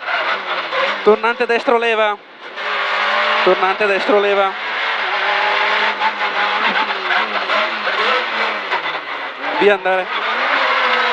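A rally car engine roars and revs hard, dropping briefly between gear changes.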